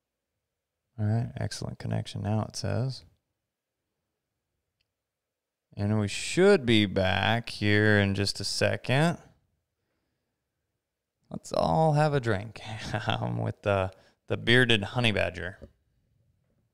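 A man speaks calmly close to a microphone, in short bursts with long pauses.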